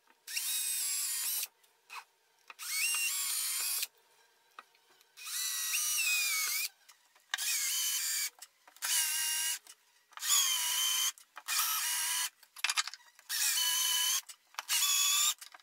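A cordless drill whirs in short, repeated bursts.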